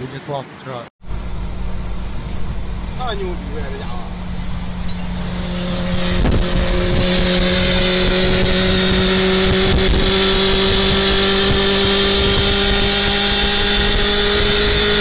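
A vehicle engine drones steadily at speed.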